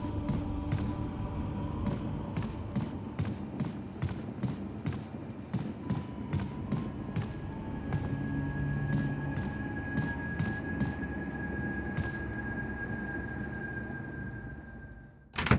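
Footsteps thud on a wooden floor at a steady pace.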